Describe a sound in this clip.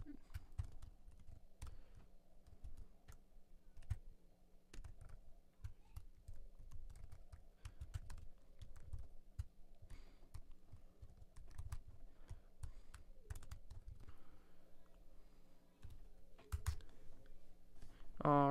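Keys click rapidly on a keyboard.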